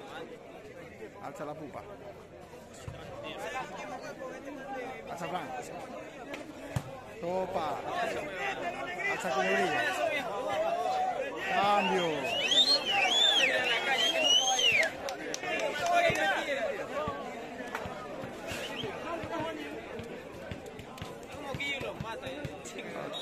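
A large outdoor crowd chatters and shouts.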